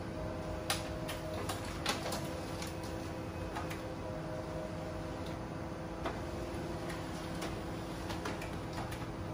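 A printer hums steadily as it runs.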